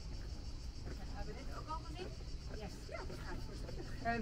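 Young women talk to each other as they walk closer.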